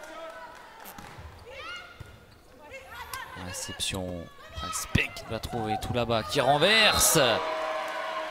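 A volleyball is struck hard several times in a large echoing hall.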